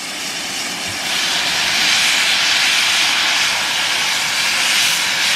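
A steam locomotive chuffs slowly along the track.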